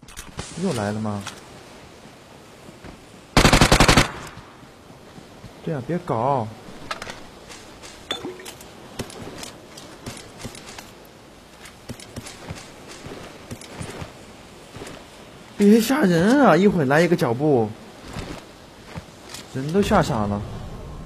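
A young man talks with animation into a microphone, in short bursts.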